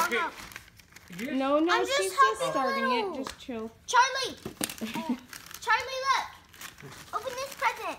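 Wrapping paper crinkles and tears.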